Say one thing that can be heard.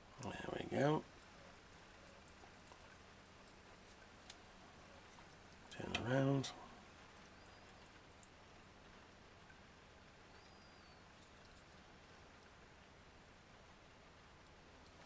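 Fingers handle a small metal part with faint, soft clicks.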